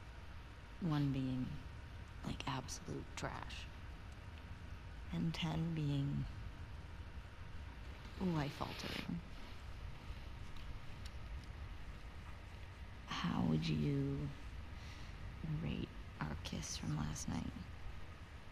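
A young woman speaks playfully.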